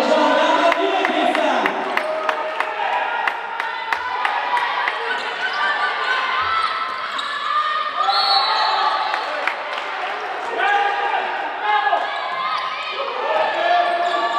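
A handball bounces on a hard floor.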